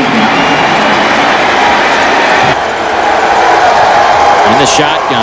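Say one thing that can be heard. A large crowd cheers and roars loudly in an open stadium.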